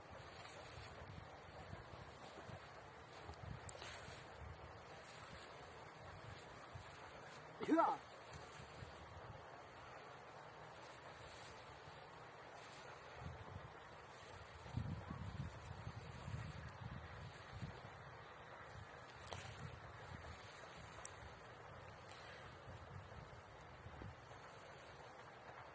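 Wind blows across the microphone outdoors in low gusts.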